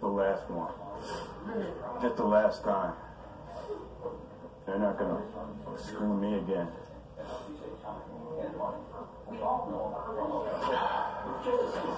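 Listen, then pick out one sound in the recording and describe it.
An elderly man speaks calmly and close by through a clip-on microphone.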